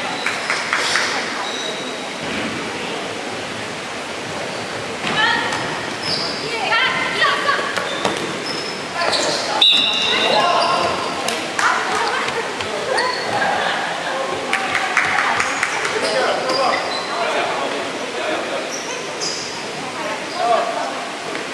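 Sneakers squeak sharply on a wooden court floor.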